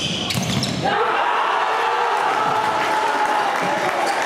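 A small crowd cheers loudly.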